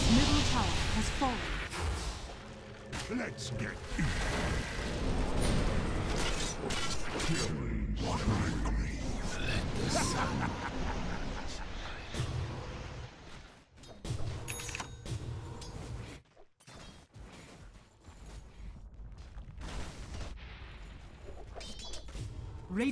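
Magic spells whoosh and burst with sharp zaps in a video game fight.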